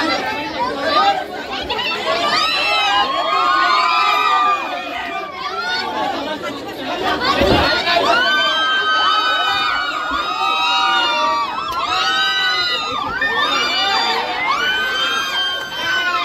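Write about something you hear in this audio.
A crowd of young men cheers and shouts loudly nearby.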